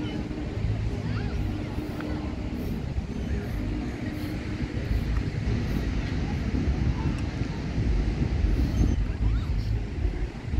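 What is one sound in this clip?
Wind gusts across an open beach outdoors.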